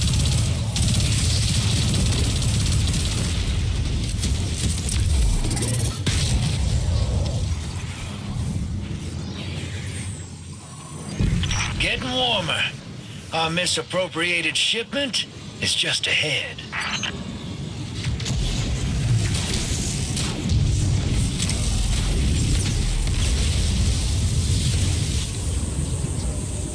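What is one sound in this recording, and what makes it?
Rapid gunfire blasts loudly and repeatedly.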